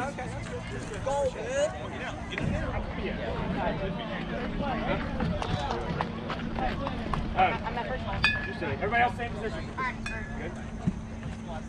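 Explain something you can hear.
Several young players chatter and call out at a distance outdoors.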